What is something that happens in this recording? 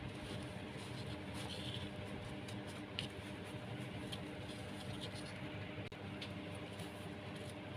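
Hands rustle and rub rough twine fibres.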